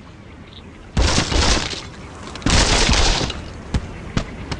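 Wooden blocks crash and break apart with cartoon sound effects.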